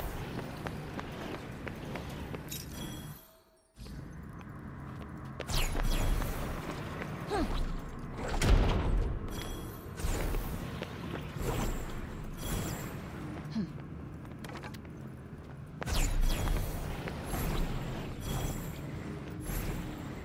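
Quick footsteps run across a stone floor.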